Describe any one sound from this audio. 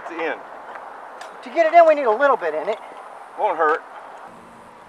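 An older man talks nearby.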